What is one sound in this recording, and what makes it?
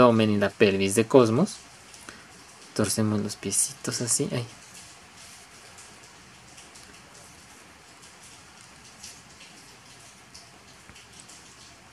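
Plastic toy parts click softly as they are turned and snapped into place.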